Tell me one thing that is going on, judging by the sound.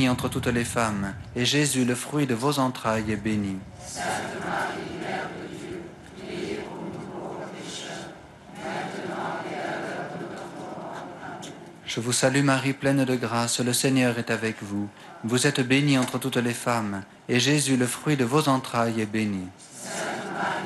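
A man chants through a microphone, heard over loudspeakers.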